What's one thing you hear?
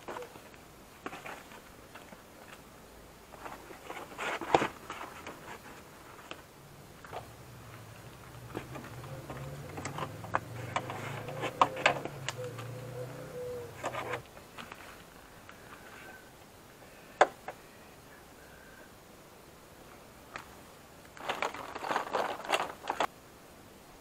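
Plastic parts click and rattle as a door panel is pried and handled.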